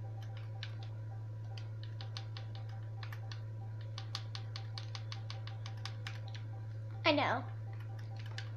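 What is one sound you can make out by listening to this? Soft, quick electronic menu clicks sound again and again.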